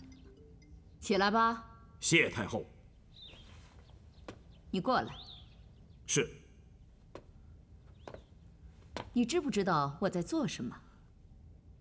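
A woman speaks with authority, close by.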